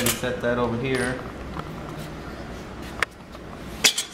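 A thin metal plate clinks against a hard surface.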